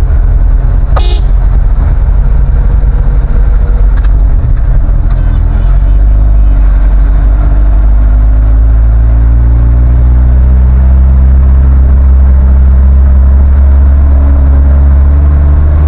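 A car engine hums steadily inside the cabin, rising as the car speeds up.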